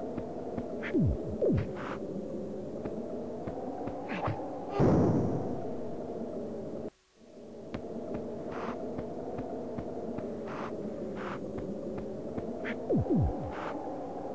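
Quick falling whistle sound effects play in pairs.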